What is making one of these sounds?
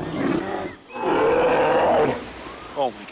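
A bear roars loudly.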